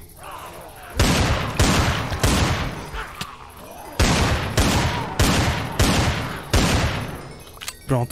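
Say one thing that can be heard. A pistol fires shot after shot in bursts.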